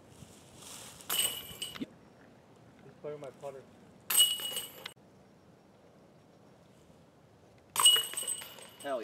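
A flying disc crashes into the metal chains of a disc golf basket.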